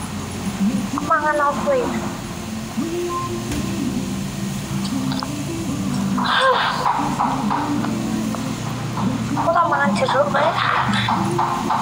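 A young woman talks and calls out through a phone microphone.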